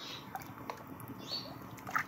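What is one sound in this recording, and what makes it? A spoon stirs liquid in a metal pot.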